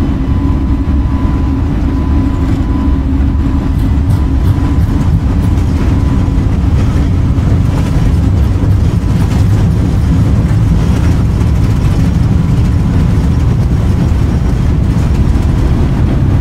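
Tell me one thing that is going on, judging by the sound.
A twin-engine jet airliner's engines roar at takeoff power as the jet rolls down a runway.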